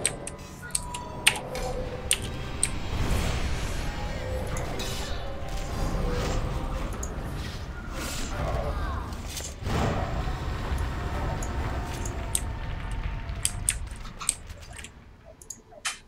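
Sharp clicks and hits ring out.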